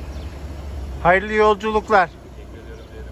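A man speaks loudly from a car window close by.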